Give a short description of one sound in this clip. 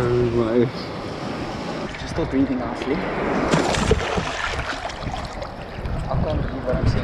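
Water sloshes and splashes close by.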